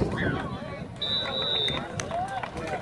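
A referee blows a long whistle blast.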